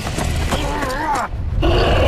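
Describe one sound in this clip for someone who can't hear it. A man growls through clenched teeth.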